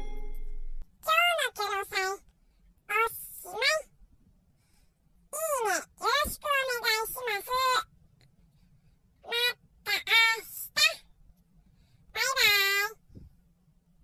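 A cat meows repeatedly in long, drawn-out cries.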